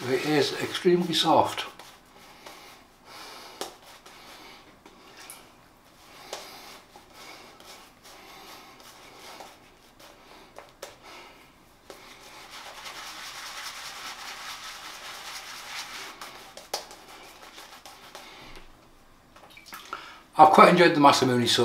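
A shaving brush swishes and scrubs lather against stubble.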